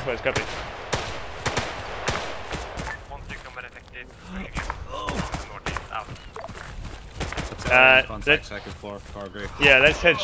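Footsteps thud quickly on grass as a person runs.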